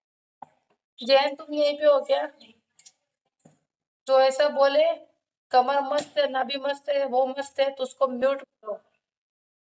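A young woman speaks close to the microphone in short bursts.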